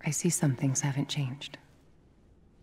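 A woman speaks calmly and wryly, close by.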